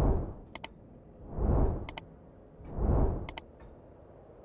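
A mouse button clicks sharply a few times.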